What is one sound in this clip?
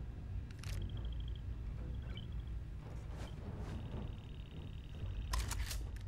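Short electronic beeps sound as menu items are picked.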